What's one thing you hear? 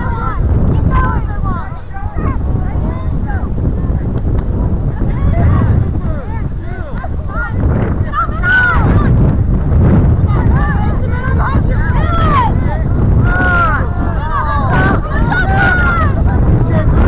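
Players shout to each other across a distant field.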